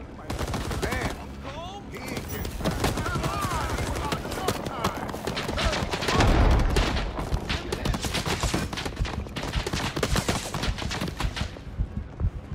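Rapid gunshots rattle close by.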